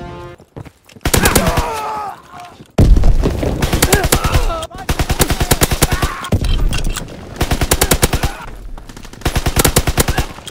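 A submachine gun fires in rapid bursts.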